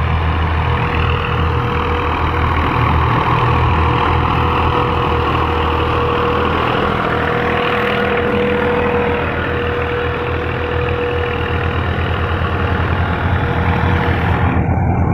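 A tractor diesel engine chugs and rumbles up close.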